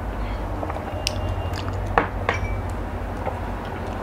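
A glass clinks against a tabletop.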